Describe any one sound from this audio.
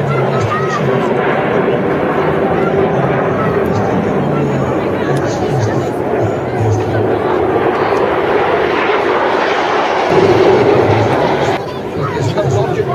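Jet planes roar overhead in a loud, steady rumble that swells and fades.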